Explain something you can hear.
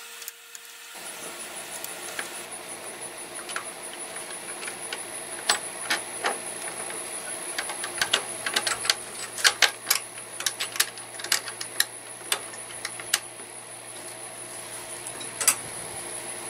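A metal wrench clicks and clanks against bolts on a mower.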